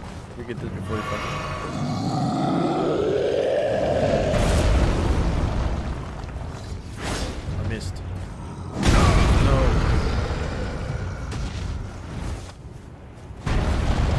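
A monster roars and growls loudly.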